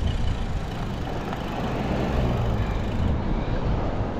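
A pickup truck drives past close by.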